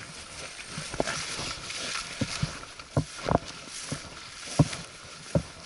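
Footsteps thud softly on the ground.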